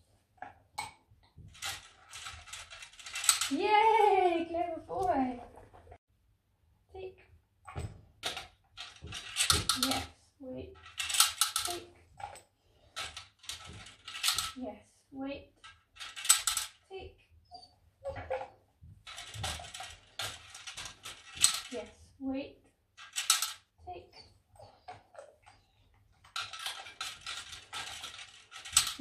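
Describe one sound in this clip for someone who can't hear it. Plastic discs clatter and rattle against a plastic frame.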